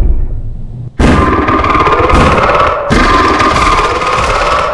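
A gun fires loudly in rapid bursts.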